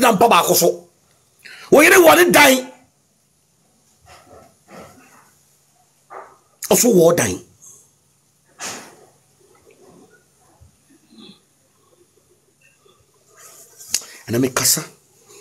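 A man speaks with animation into a phone microphone, in short bursts with pauses.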